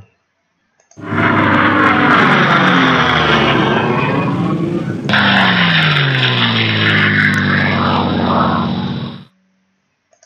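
A tank engine rumbles loudly as it moves.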